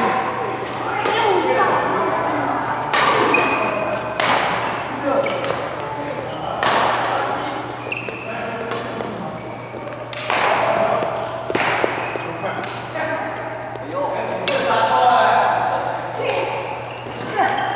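Rackets strike a shuttlecock with sharp pops in an echoing hall.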